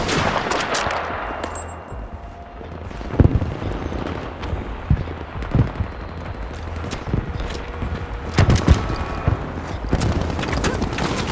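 Distant explosions rumble across a battlefield.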